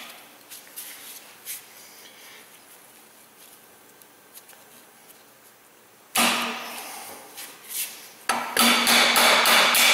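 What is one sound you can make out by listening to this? Small metal parts clink and scrape together.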